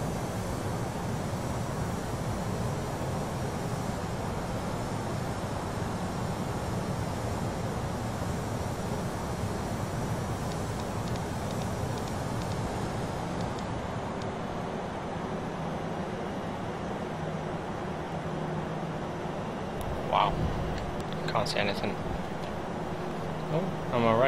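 Jet engines drone steadily from inside a cockpit.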